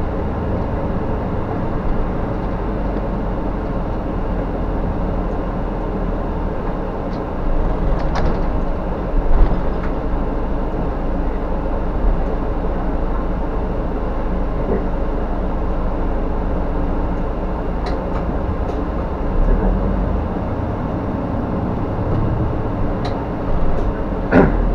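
A bus engine hums steadily from inside the cab.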